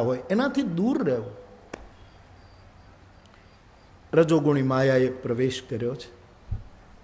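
An elderly man speaks expressively into a microphone, with sung, drawn-out phrases.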